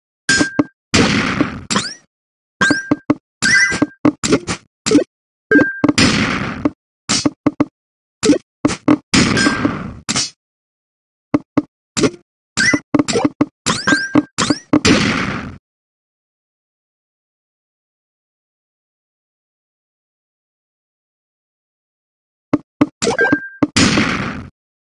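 A short whooshing burst sounds each time rows of blocks clear.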